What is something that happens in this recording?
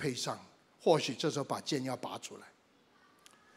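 An elderly man speaks calmly into a microphone over a loudspeaker.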